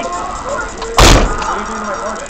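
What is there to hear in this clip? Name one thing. A hard thump strikes close by.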